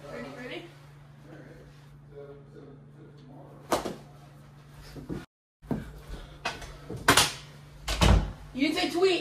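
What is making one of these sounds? Hockey sticks clack and knock against a ball.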